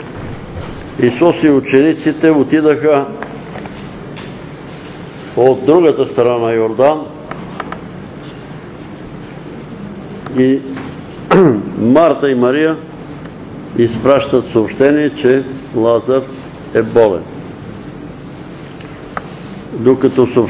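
An elderly man speaks slowly in bursts, in a room with a slight echo.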